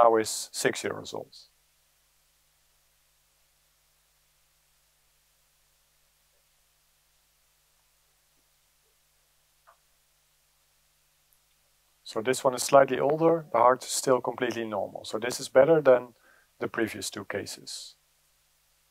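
A man speaks calmly into a microphone, heard through loudspeakers in a large room.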